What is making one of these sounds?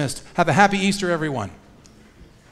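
A man sings a short phrase through a microphone in an echoing hall.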